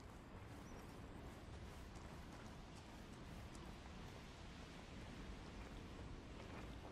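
Footsteps shuffle softly over gravel and grass.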